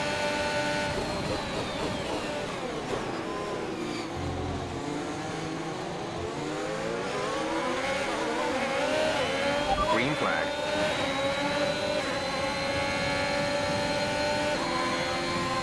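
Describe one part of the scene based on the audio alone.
Gears shift with short jolts in the engine's whine.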